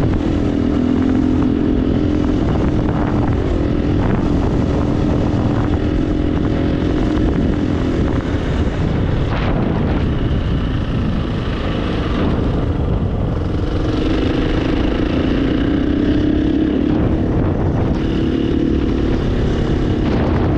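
Wind buffets loudly against a helmet.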